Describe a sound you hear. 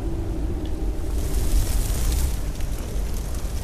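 A burst of fire roars and whooshes.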